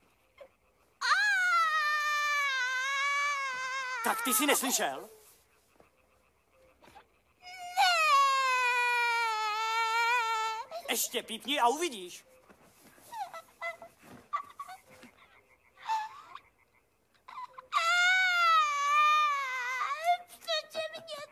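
A young ape shrieks loudly in long, shrill, wavering cries.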